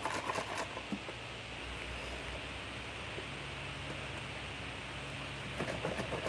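Liquid sloshes inside a plastic jug as it is shaken.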